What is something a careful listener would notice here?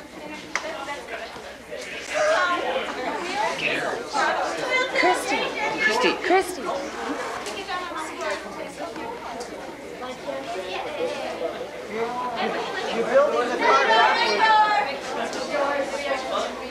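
A crowd of young people chatter and call out all around, close by, in a room that echoes.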